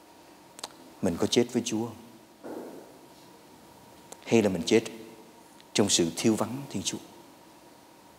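A middle-aged man speaks calmly in short phrases, echoing in a large hall.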